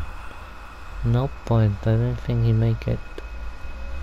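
A man speaks in a low, strained voice close by.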